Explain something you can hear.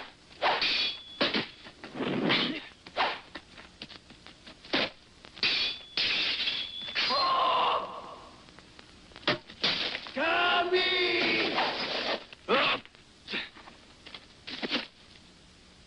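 Sharp blows and whooshes strike in quick bursts.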